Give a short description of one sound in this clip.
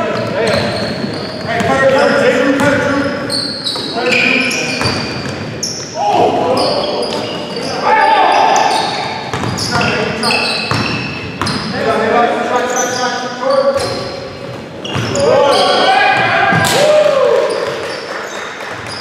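Men shout and call out to each other across the echoing hall.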